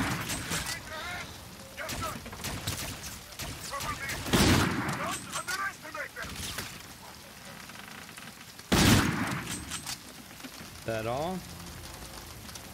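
A man talks calmly into a headset microphone.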